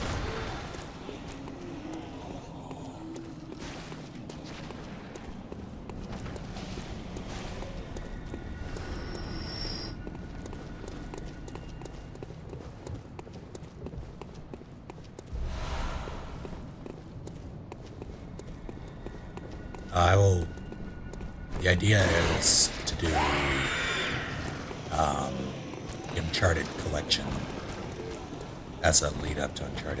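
Footsteps run across stone.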